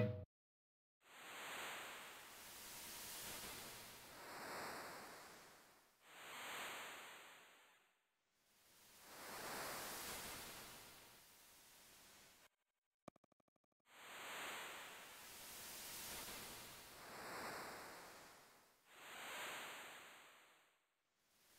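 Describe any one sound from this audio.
Wind rushes past an airship in slow, repeated swells.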